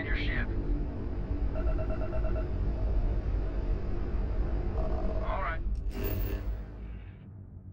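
A spaceship engine rumbles steadily and deeply.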